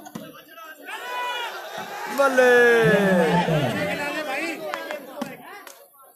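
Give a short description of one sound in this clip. A crowd of men cheers loudly.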